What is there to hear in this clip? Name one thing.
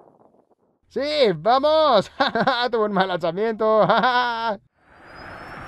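A man shouts with excitement.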